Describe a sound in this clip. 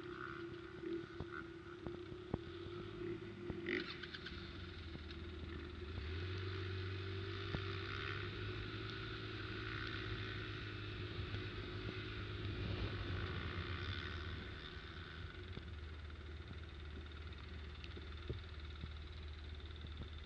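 Tyres bump and rattle over a muddy field.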